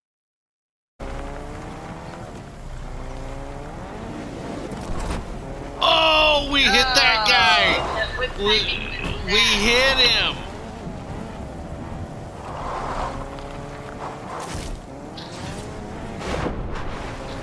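A car engine hums and revs as the car speeds along.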